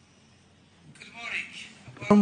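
A man begins speaking into a microphone.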